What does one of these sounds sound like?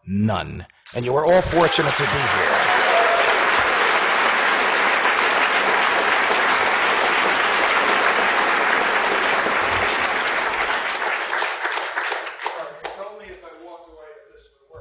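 An audience applauds loudly and steadily, then the applause fades.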